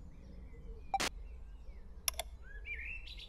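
A short electronic click sounds.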